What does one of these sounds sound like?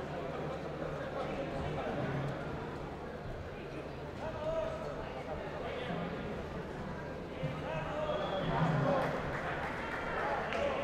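A crowd of people talk and shout encouragement in a large echoing hall.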